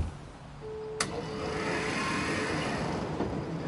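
A bus door hisses open.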